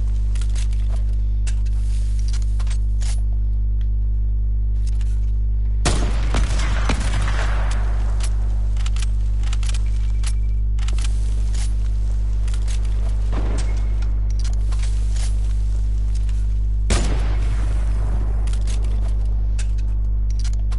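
Building pieces snap into place with quick clicks.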